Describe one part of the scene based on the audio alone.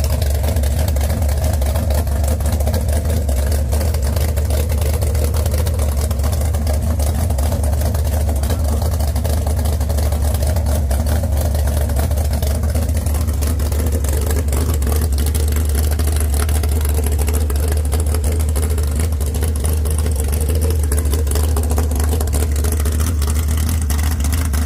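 A big engine idles loudly with a steady, deep rumble.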